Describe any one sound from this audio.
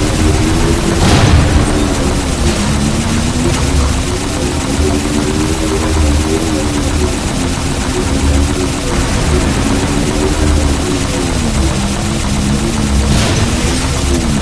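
Energy blasts burst nearby.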